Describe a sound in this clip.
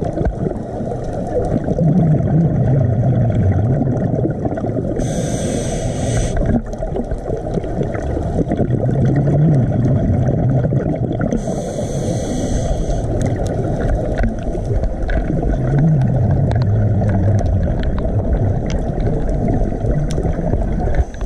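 Water rumbles and swirls in a steady, muffled underwater wash.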